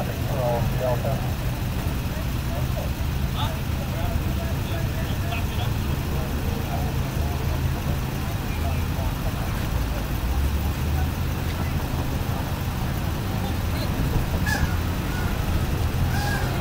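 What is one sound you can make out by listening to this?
Men talk nearby in calm voices.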